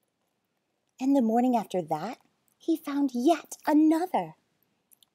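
A woman reads aloud close by, in a lively, expressive voice.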